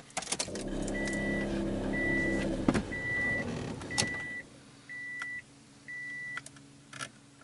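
A car's warning chime beeps repeatedly.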